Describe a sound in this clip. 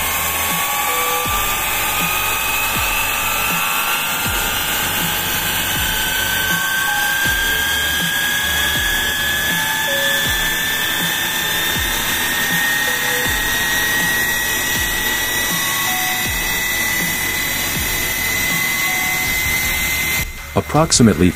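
A small steam turbine whines, rising slowly in pitch.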